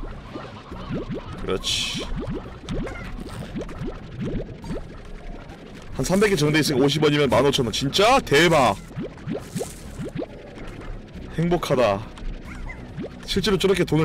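Small pops sound as fruit is sucked in.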